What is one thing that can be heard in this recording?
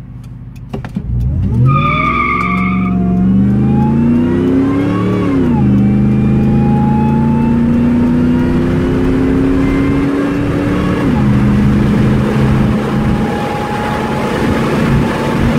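A car engine roars and climbs in pitch as the car speeds up hard.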